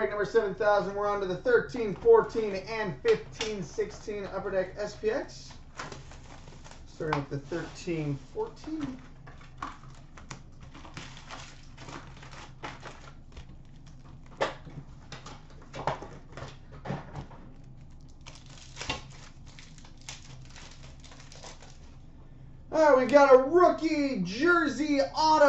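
Hands rustle and crinkle wrapping and shuffle trading cards close by.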